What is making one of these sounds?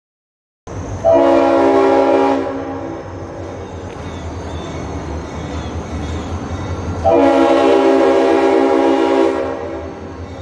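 A train horn blows loud, long blasts in the distance.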